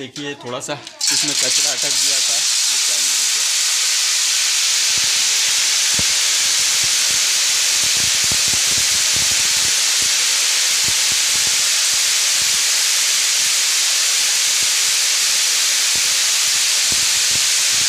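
A grain machine runs with a steady, loud whirring roar.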